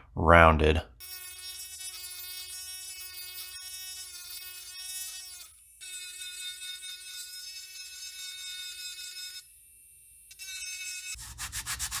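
A small electric rotary tool whines steadily as it grinds.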